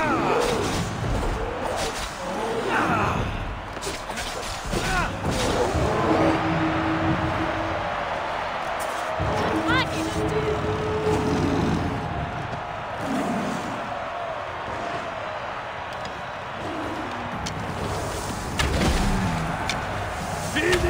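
Blows and thuds land in a scuffle.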